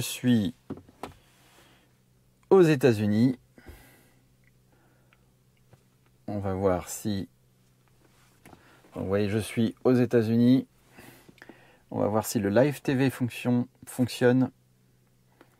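An older man talks calmly and close by, in short bursts.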